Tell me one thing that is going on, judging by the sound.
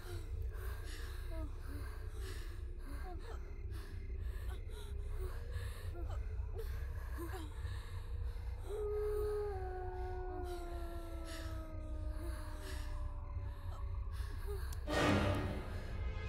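A young woman pants and gasps heavily close by.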